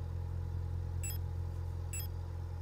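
Short electronic menu beeps sound twice.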